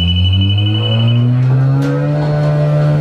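A machine powers up with a rising whine.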